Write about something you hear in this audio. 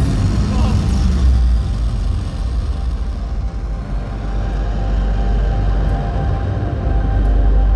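Loud music booms through a large echoing arena.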